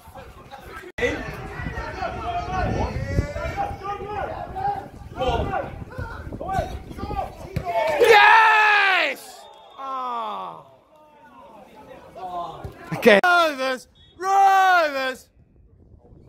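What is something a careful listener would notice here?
Men shout to each other across an outdoor football pitch.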